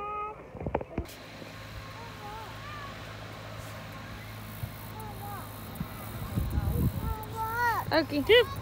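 Wind buffets the microphone outdoors.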